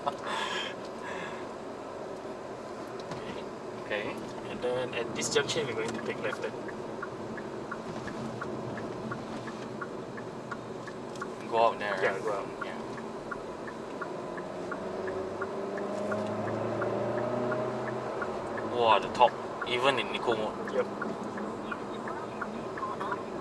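A car engine hums steadily from inside the cabin, rising briefly.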